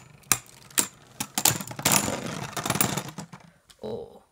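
Small plastic pieces click and clatter as they are handled.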